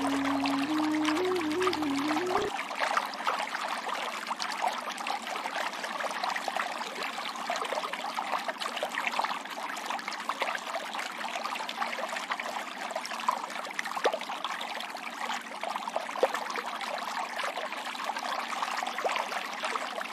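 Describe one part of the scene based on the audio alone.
A mountain stream rushes and splashes over rocks close by.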